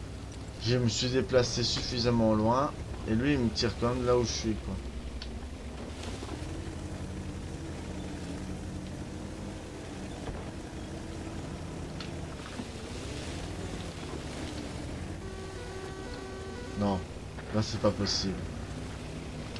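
A young man talks animatedly, close to a microphone.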